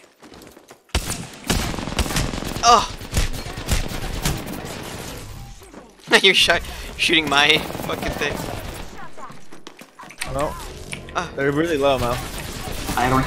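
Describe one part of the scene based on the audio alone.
Rapid gunfire bursts out in loud volleys.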